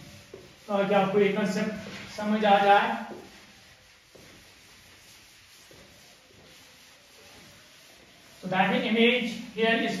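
A sponge rubs over a board.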